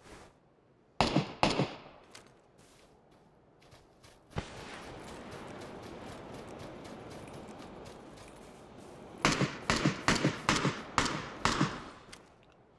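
Gunshots ring out in quick bursts, loud and sharp.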